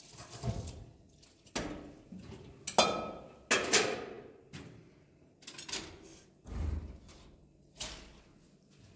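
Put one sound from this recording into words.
Metal dishes clatter and clank against each other.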